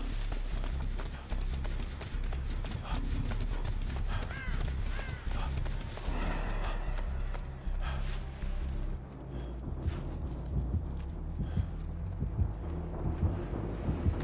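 Footsteps run through undergrowth.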